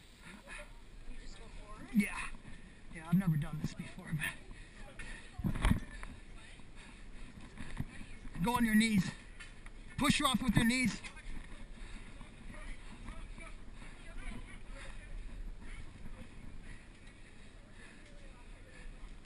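Hands grip and pull on a rope cargo net, the ropes creaking and rustling.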